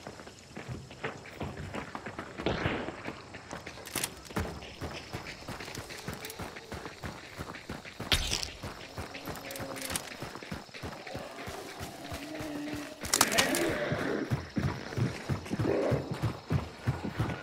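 Footsteps thud on wooden boards and on dirt.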